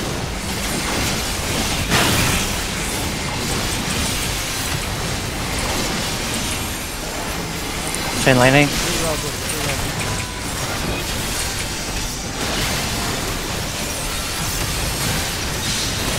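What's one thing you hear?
Magic blasts and crackling spell effects burst continuously in a busy battle.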